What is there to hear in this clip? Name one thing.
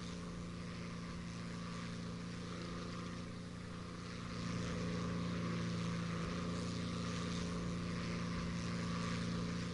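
Wind rushes past a plane.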